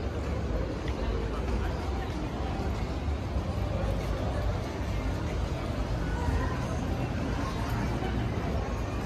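A crowd of people chatter at a distance outdoors.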